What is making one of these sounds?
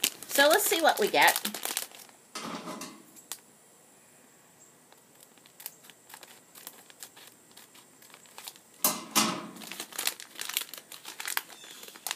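A plastic wrapper crinkles in someone's hands.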